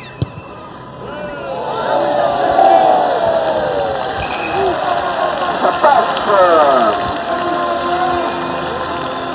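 A large crowd cheers loudly in a stadium.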